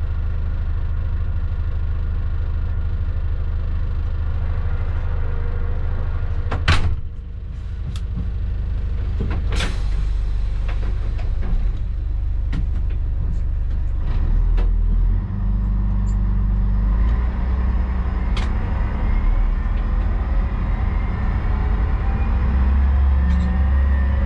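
A train engine rumbles steadily as the train rolls along the track.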